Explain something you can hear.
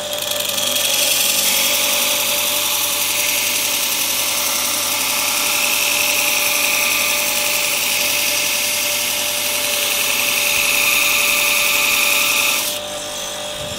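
A metal blade grinds with a steady, harsh hiss against a sanding belt.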